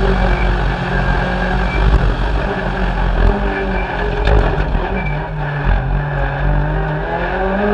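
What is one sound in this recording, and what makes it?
A rally car engine roars loudly, revving up and down as it shifts gears.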